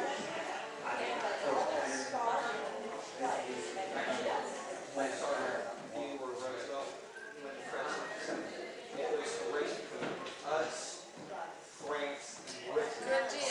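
Several older men and women chat casually nearby in a room with some echo.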